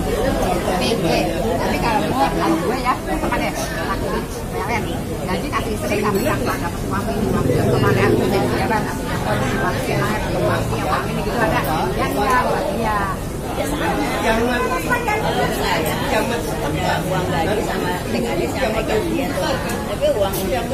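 Several men and women chat in the background.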